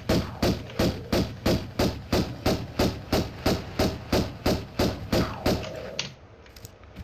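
Quick footsteps thud in a steady running rhythm.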